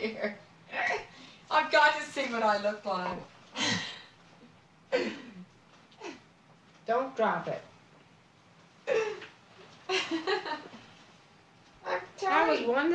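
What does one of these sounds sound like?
A woman laughs, close by.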